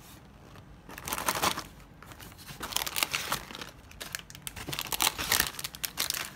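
Foil packets crinkle loudly.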